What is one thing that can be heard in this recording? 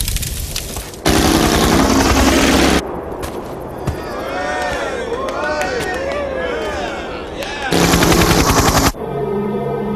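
A helicopter's rotor chops loudly close by.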